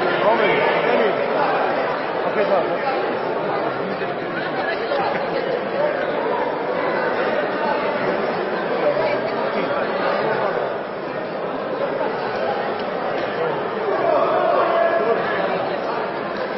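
A crowd cheers and shouts steadily in a large echoing hall.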